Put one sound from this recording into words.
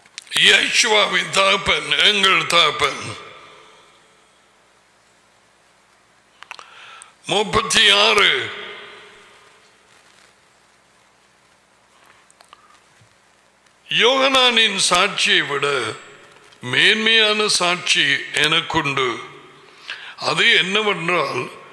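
An older man speaks calmly into a close microphone, in short phrases with pauses.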